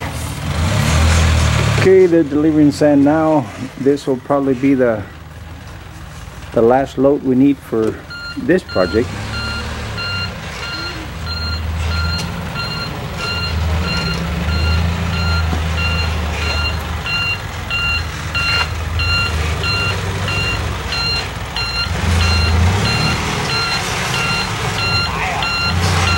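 A truck engine idles and rumbles low nearby.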